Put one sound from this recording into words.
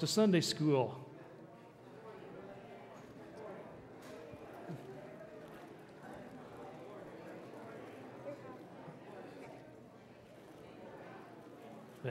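A crowd of adults chats and greets one another in a low murmur.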